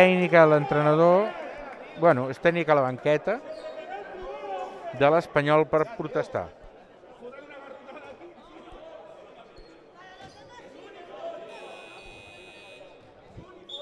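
Sneakers squeak on a court in an echoing gym.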